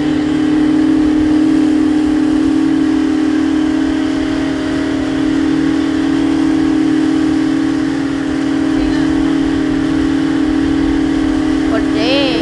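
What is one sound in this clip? A boat's outboard motor drones steadily.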